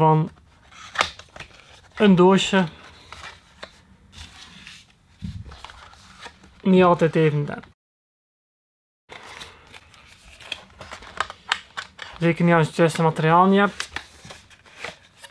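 Cardboard packaging rustles and scrapes as hands handle a box.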